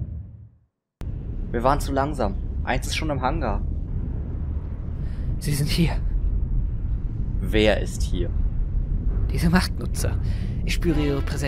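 A young man speaks in a low, tense voice.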